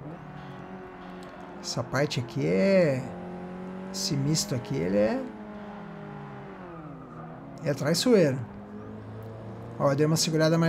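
A car engine hums steadily and rises and falls in pitch as the car accelerates and slows.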